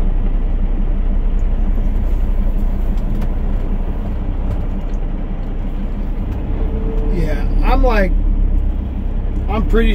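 Trucks rumble past close by.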